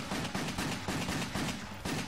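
Gunshots fire in a video game.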